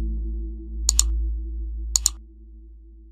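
A computer mouse clicks sharply, twice in quick succession.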